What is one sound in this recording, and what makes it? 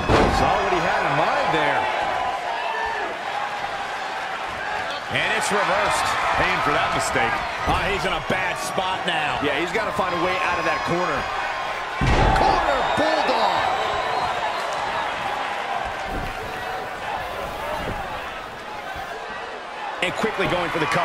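An arena crowd cheers and murmurs.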